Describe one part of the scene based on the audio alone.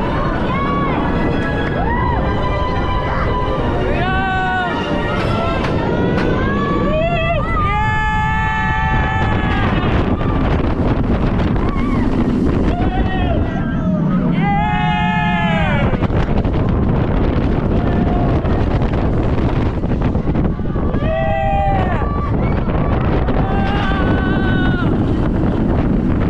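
Riders scream with excitement.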